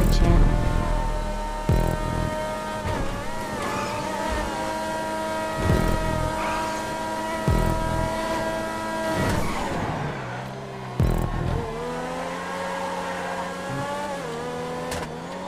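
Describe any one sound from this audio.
A race car engine whines steadily at high revs.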